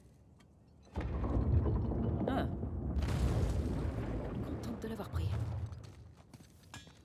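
A heavy stone statue scrapes and rumbles as it is pushed.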